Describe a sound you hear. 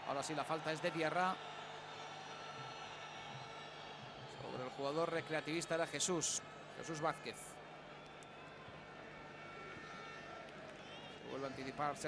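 A large stadium crowd murmurs and roars steadily in the open air.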